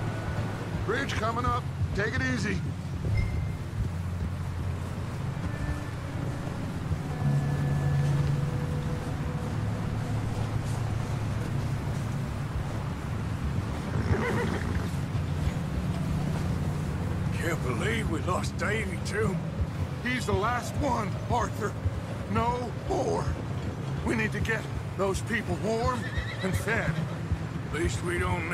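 Horses' hooves thud steadily on the ground.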